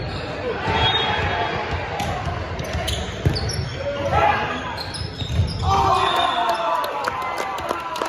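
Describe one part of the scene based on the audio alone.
A volleyball is hit and thumps in a large echoing gym.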